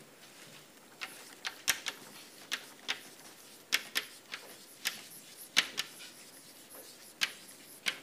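Chalk taps and scrapes sharply on a blackboard.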